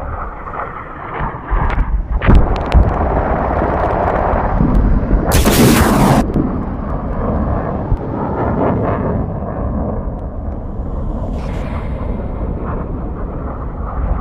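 An aircraft engine roars overhead.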